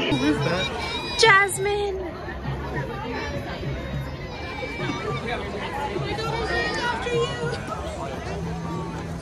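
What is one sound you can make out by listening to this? A young woman sings outdoors.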